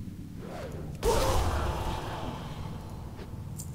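A magic blast explodes with a loud crash and rings out.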